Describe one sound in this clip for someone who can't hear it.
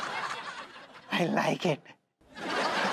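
A man laughs loudly nearby.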